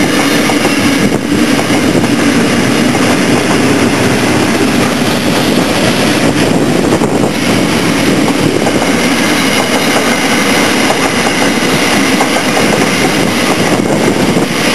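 A long freight train rumbles and clatters steadily along the tracks close by.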